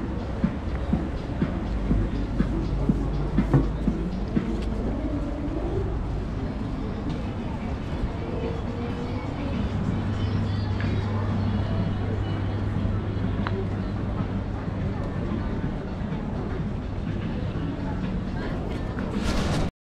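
Footsteps tap on paving stones outdoors.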